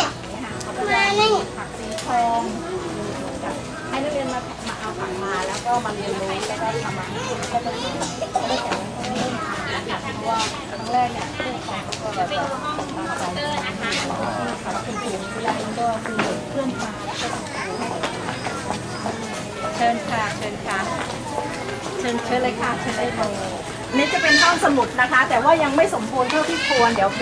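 Several adults murmur and chat around a nearby speaker.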